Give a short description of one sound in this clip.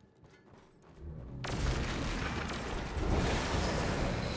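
An energy beam crackles and roars.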